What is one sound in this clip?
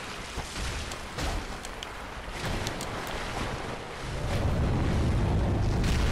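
Water splashes and crashes heavily.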